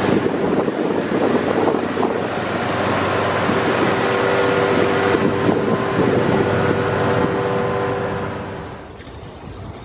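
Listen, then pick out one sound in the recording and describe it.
A ship's engine drones steadily nearby.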